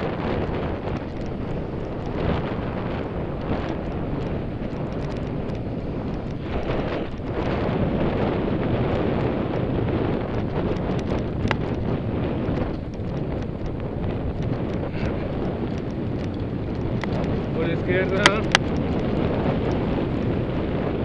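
Wind rushes loudly past, outdoors at speed.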